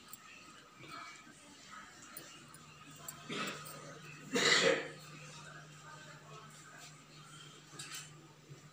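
Hot oil sizzles faintly in a pan.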